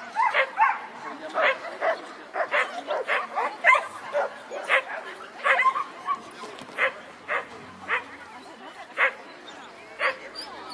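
A dog barks again and again, sharp and excited.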